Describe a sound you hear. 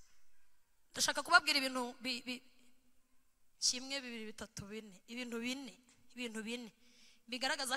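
A woman speaks with animation into a microphone, heard through loudspeakers in a large echoing hall.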